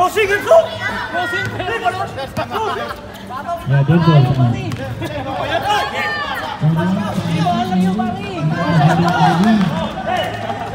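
Men shout and call out close by outdoors.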